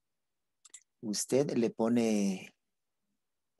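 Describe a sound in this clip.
A young woman speaks briefly through an online call.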